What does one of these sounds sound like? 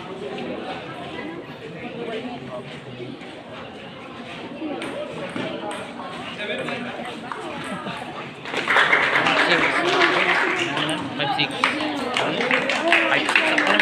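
A ping pong ball clicks back and forth on a table and paddles.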